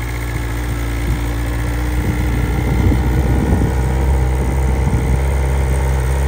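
A motorcycle exhaust pops and crackles.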